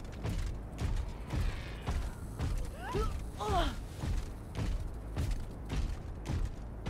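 Heavy footsteps thud at a steady walking pace.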